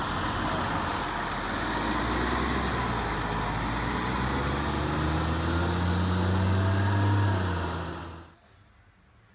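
A bus engine rumbles as the bus drives slowly away outdoors.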